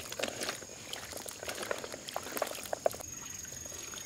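Small hard fruits clatter and knock together as hands stir them.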